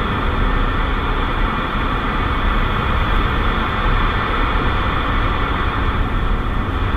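A car drives steadily along a road at speed.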